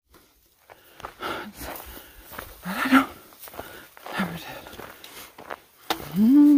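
Dry grass swishes against legs while walking.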